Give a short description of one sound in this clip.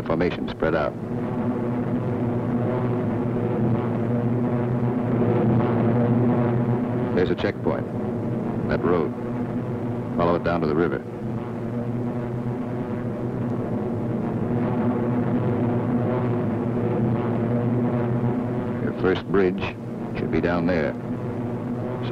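Propeller aircraft engines drone steadily.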